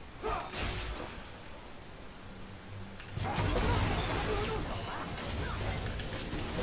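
Video game spell effects whoosh and clash.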